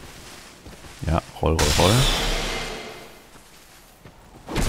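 Sword blows clash and thud.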